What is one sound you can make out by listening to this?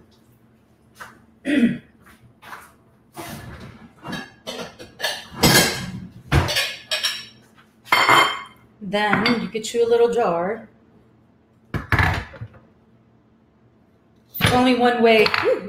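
Dishes and utensils clink and knock.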